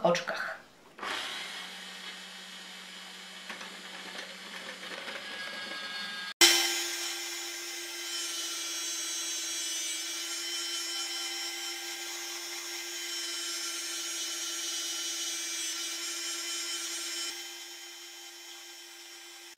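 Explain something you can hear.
An electric grater motor whirs steadily.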